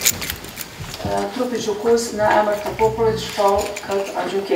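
A middle-aged woman reads out calmly through a microphone.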